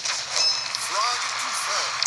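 Game blaster shots fire in quick bursts.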